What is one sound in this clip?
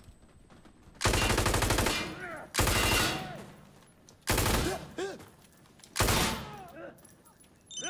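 A rifle fires in short, rapid bursts.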